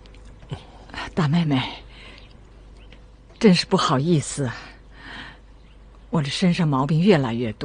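An elderly woman speaks calmly and close by.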